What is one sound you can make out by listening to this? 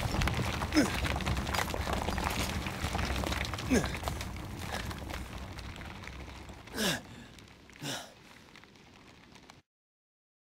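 Heavy rocks rumble and grind as a rock pile crumbles, slowly fading away.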